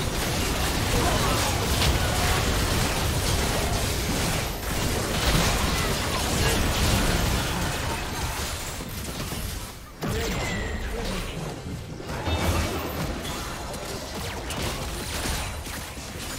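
Game spell effects blast, crackle and whoosh in a busy fight.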